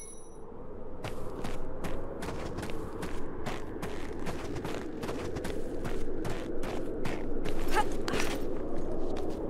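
Footsteps run quickly over hard, snowy ground.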